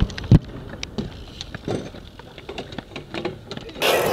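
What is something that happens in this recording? A bike clatters down onto concrete.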